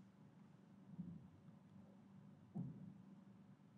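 Bare feet thump and shuffle on a hard floor.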